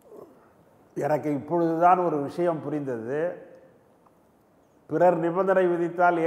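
An older man speaks calmly over a microphone line.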